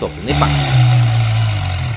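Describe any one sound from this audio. A motorcycle engine fires up with a quick rising roar.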